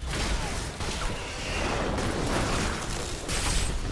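Lightning crackles and booms loudly.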